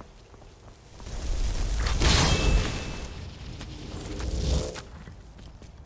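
A magical blast roars loudly in a burst of rushing noise.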